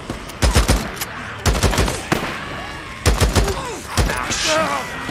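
Rifle shots fire in short bursts.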